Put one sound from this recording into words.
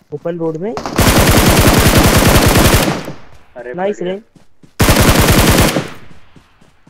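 A rifle fires rapid bursts of shots that echo briefly.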